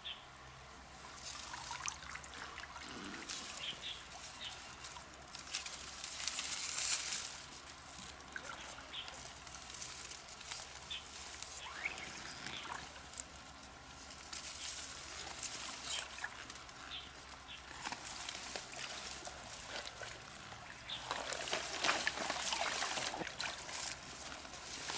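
Water splashes and swishes as a girl wades through a shallow stream.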